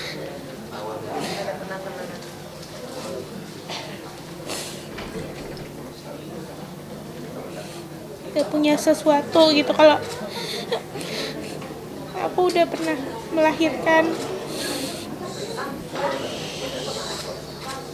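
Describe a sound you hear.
A young woman sobs and sniffles.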